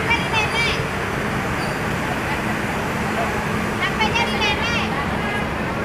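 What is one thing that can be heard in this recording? A child shouts in a high voice.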